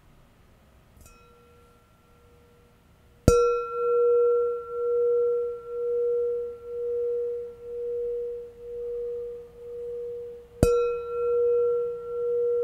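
A metal bowl rings with a long, slowly pulsing tone.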